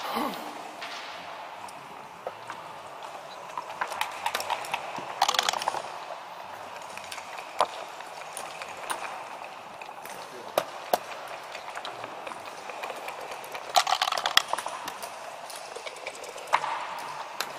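Game pieces click and clack as they are moved on a board.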